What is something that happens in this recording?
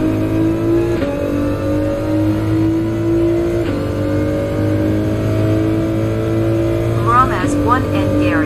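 A racing car engine drops in pitch briefly at each gear change.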